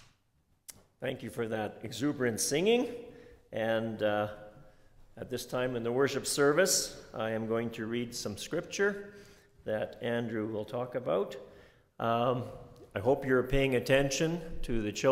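A man speaks calmly and clearly through a microphone.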